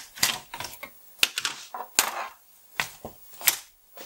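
A circuit board knocks and clatters against a plastic case.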